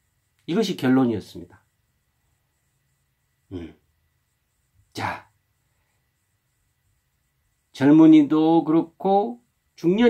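A middle-aged man speaks close to a microphone in short, animated bursts with pauses.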